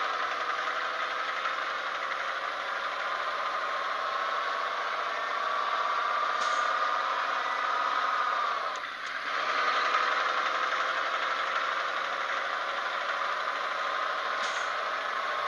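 A truck engine drones steadily, its pitch rising as it speeds up, with a brief dip as it changes gear.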